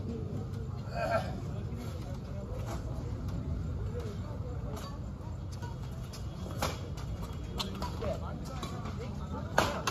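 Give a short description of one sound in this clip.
Rackets strike a shuttlecock with sharp pops.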